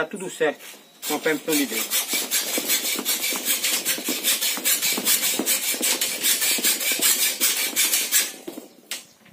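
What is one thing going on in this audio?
A hand tool clicks rapidly against wire.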